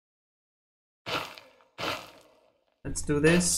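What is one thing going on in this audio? Gravel crunches as blocks break and fall.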